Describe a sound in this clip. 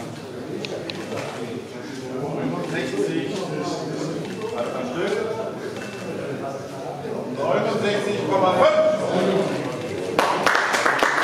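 Several men talk nearby, calmly and overlapping.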